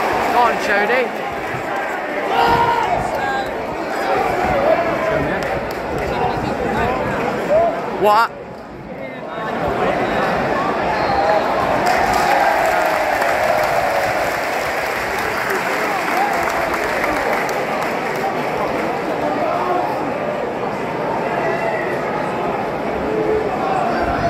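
A large stadium crowd chants and sings loudly outdoors.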